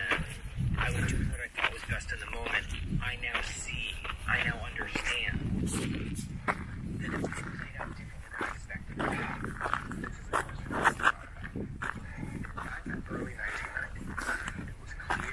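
Dogs pant and rustle through dry brush.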